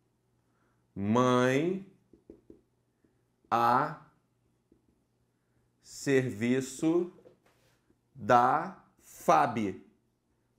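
A man speaks in short, animated phrases close to a microphone, with pauses between them.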